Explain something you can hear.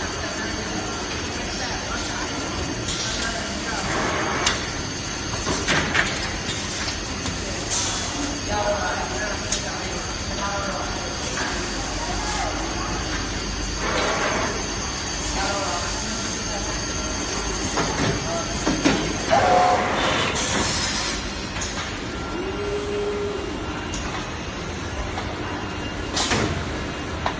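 Factory machinery hums steadily in a large hall.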